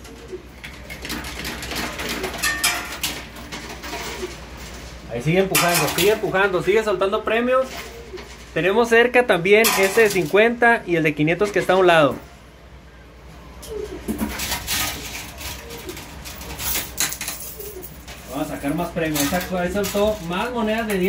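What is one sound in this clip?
Coins clink and rattle as a machine's moving shelf pushes them.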